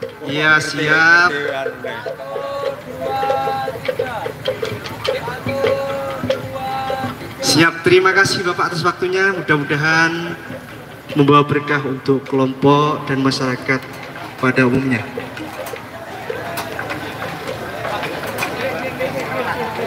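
A man sings into a microphone, heard over loudspeakers outdoors.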